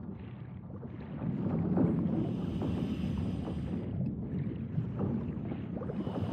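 Air bubbles from a diver's breathing gear gurgle and rumble underwater.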